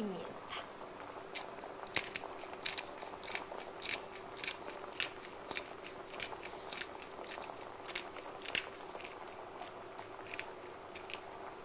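A pepper mill grinds with quick clicking turns.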